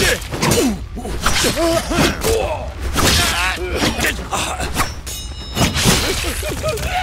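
Swords clash and ring with sharp metallic strikes.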